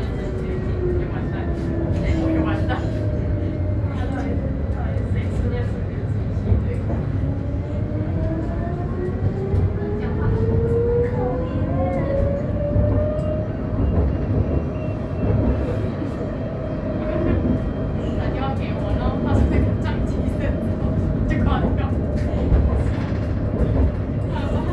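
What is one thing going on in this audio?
A vehicle engine hums steadily, rising in pitch as it speeds up.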